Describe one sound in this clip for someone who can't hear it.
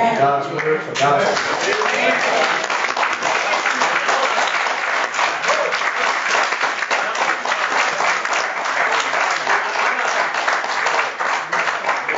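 A crowd claps and applauds steadily.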